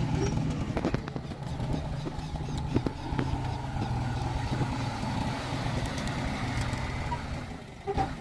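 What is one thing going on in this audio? Metal harrow discs scrape and clatter through soil.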